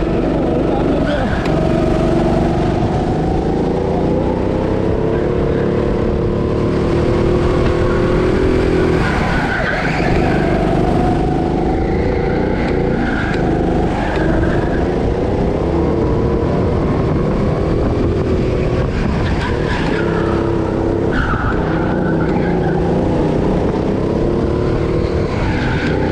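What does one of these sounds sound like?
A go-kart engine drones at full throttle, rising and dipping through corners.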